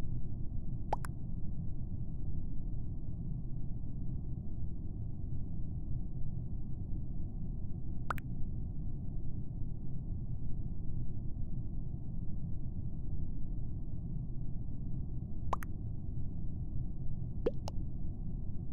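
A short electronic blip sounds now and then as game messages pop up.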